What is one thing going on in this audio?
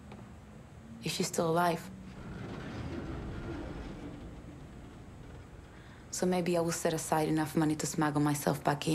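A woman speaks calmly and earnestly, close by.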